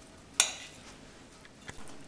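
A spoon scrapes food from a pan into a bowl.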